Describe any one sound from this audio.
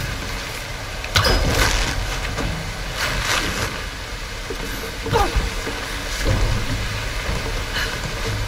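Water rushes steadily down a waterfall.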